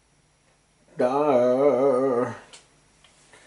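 A video game plays a short musical tune through a speaker.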